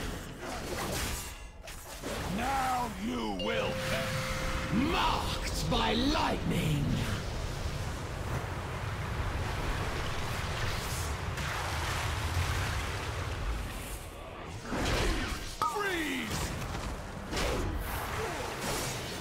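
Magical spell effects whoosh and chime.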